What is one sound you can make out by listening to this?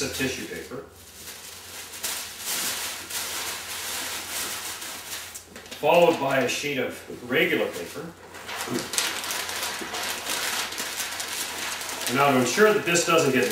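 Paper rustles and crinkles as a man wraps something.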